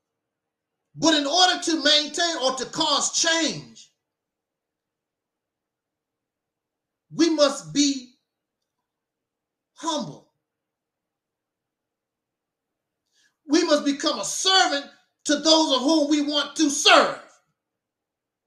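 A middle-aged man speaks emphatically into a microphone, in short bursts with pauses.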